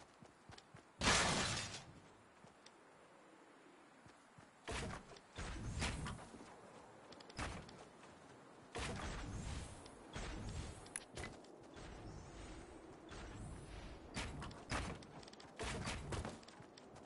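Building pieces snap into place with sharp, hollow clatters.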